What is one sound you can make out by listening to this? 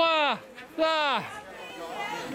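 A crowd of people shouts loudly outdoors.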